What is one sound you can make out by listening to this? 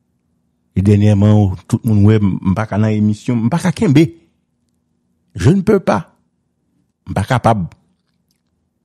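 A middle-aged man speaks with animation over a phone line.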